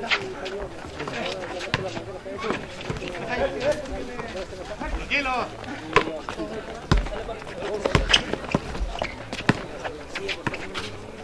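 A basketball bounces on a concrete court.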